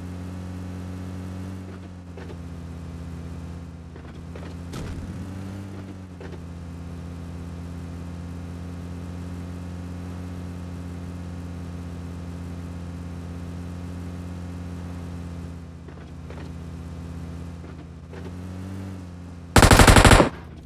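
An off-road vehicle's engine drones as it drives.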